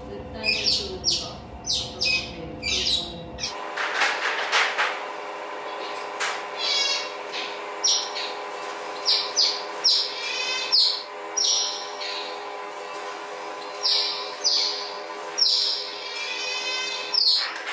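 Otters squeak and chirp in high, repeated calls.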